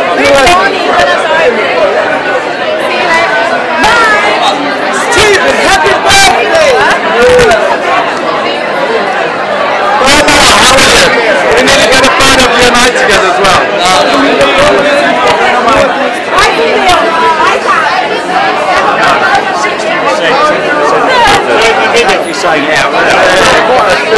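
A crowd chatters loudly in an echoing room.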